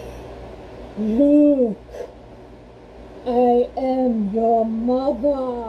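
A person talks, muffled through a breathing mask, close by.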